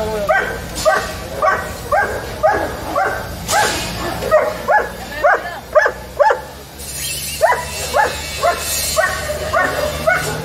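A dog gives short, muffled barks over and over, close by.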